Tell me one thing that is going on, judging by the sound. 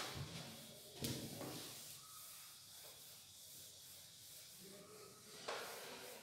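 An eraser squeaks as it wipes a board.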